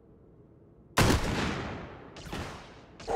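A shotgun fires once, with a ringing tail.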